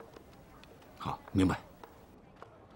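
A man answers briefly in a low voice.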